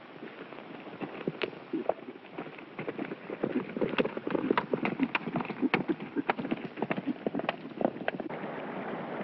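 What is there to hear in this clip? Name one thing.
Horses' hooves pound on dry ground.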